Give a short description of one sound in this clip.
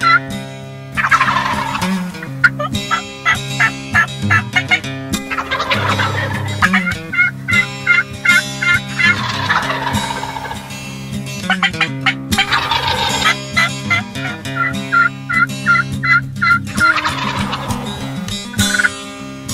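A turkey gobbles loudly outdoors.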